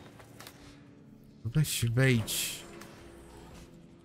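A heavy metal valve wheel creaks as it is turned by hand.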